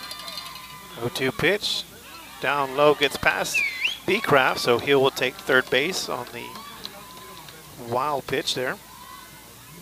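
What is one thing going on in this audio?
Young women shout and cheer outdoors at a distance.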